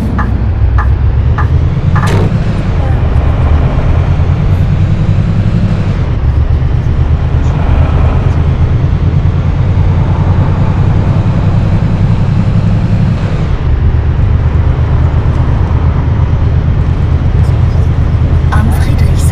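A bus engine rumbles steadily.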